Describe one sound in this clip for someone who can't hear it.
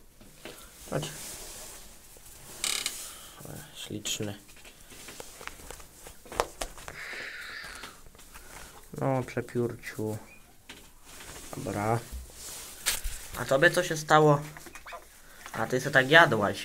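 Dry straw rustles and crackles under a hand.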